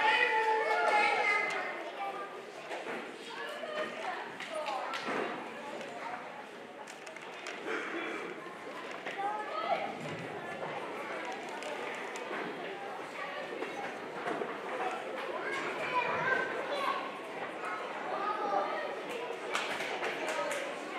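Children sing together in an echoing hall.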